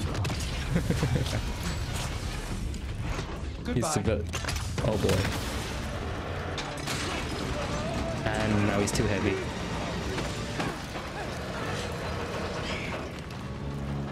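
Deep booms and crashes ring out in a loud action scene.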